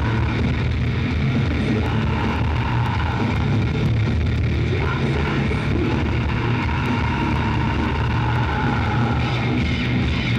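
A rock band plays loudly, heard from far back in a large echoing hall.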